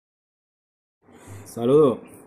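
A man talks briefly and close by.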